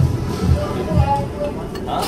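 Broth bubbles in a pot.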